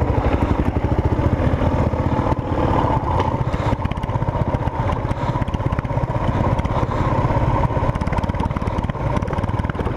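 A motorcycle engine putters loudly and close by.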